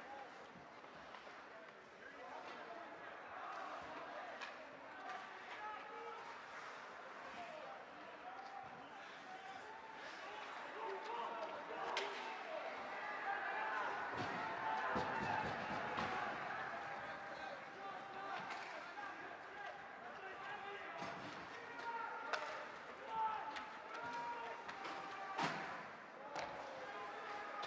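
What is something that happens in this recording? A crowd of spectators murmurs and cheers in an echoing arena.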